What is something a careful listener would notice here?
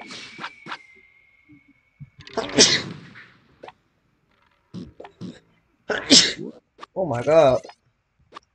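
Short cartoonish game sound effects zap and pop.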